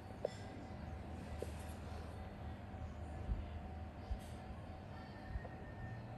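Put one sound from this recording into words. Metal tweezers click softly, close by.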